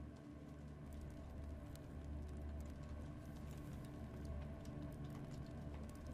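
Light paws patter softly over stone.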